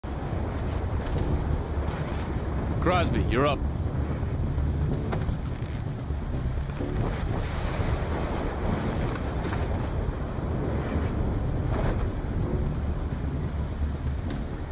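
Heavy rain pours down steadily outdoors in a roaring wind.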